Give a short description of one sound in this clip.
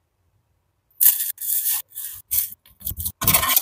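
Sugar pours into a bowl.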